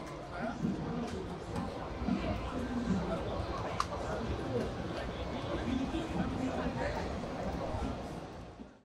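A crowd of people chatters in a busy, noisy hall.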